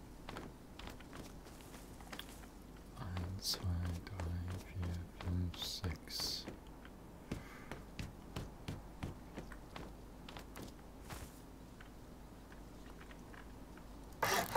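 Footsteps tread steadily over ground and hard paving.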